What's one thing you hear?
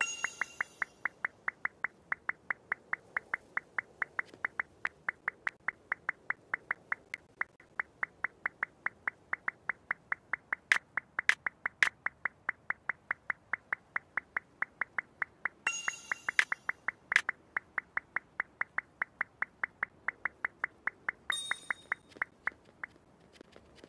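Blocks snap into place with rapid, steady clicks.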